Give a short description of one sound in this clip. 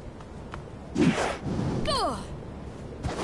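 A sudden whoosh sounds as a figure leaps high into the air.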